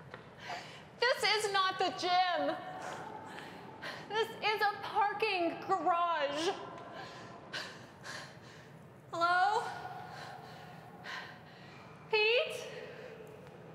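A young woman calls out loudly, echoing in a large hall.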